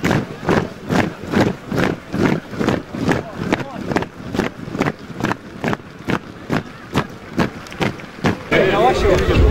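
Boots stamp on pavement in a steady marching rhythm.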